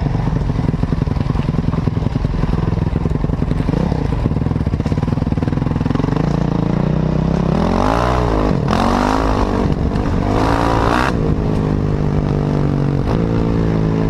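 Wind buffets loudly against the rider.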